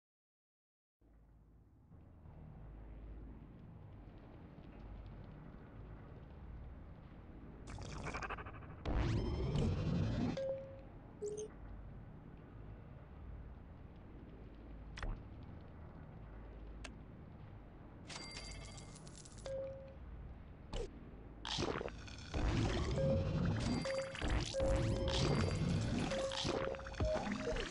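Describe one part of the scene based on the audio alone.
Soft game music plays steadily.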